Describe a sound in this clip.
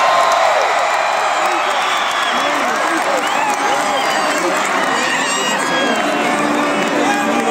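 A large crowd chatters and shouts loudly in a big echoing hall.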